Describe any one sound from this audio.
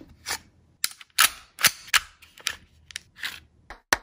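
Metal parts click sharply as a pistol is taken apart.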